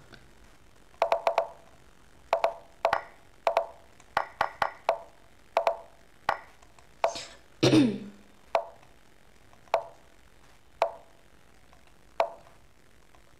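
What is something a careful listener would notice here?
A computer chess game plays short knocking sounds as pieces move.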